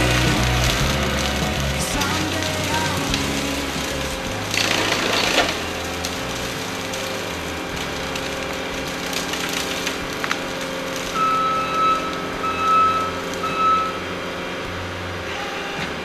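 A mulcher head grinds and shreds brush.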